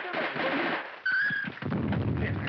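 A woman cries out in fright.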